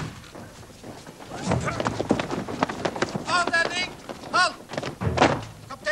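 Many footsteps shuffle and tramp on pavement.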